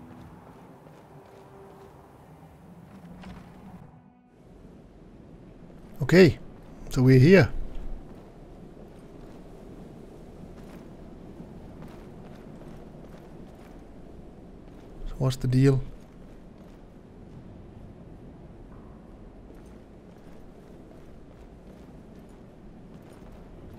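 Footsteps fall on stone.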